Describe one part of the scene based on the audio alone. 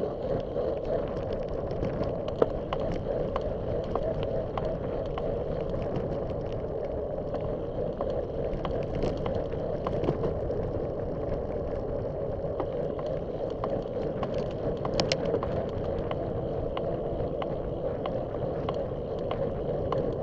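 Bicycle tyres roll and hum on a hard path.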